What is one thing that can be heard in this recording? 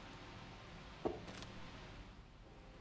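A cat lands with a soft thud.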